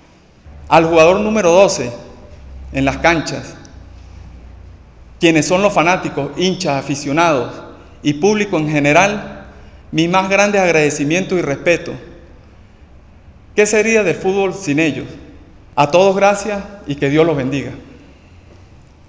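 A young man speaks calmly into a microphone, heard through a loudspeaker.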